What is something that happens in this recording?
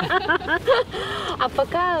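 A woman laughs loudly.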